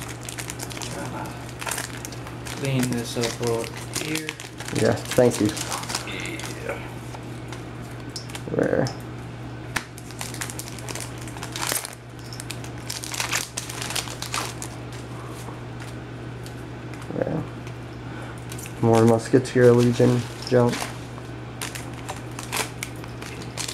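Foil wrappers crinkle and rustle as hands open card packs.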